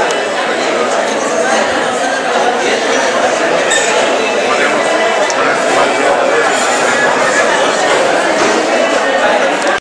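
Many men talk at once in a crowded, noisy room.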